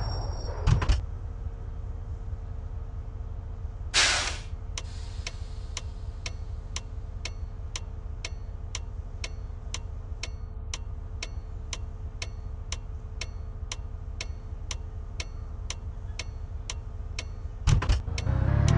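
A bus engine idles quietly while the bus stands still.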